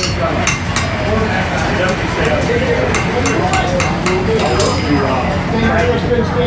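A forge fire roars steadily.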